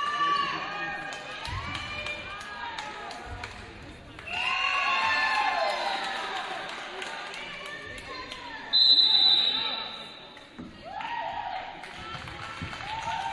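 Young women players shout and cheer in an echoing gym.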